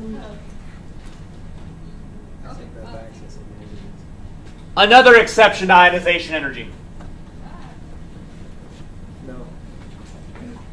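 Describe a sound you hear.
A man speaks nearby, with one loud, animated outburst.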